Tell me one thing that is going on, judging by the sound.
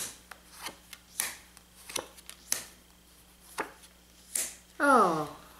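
Playing cards are shuffled and tapped together.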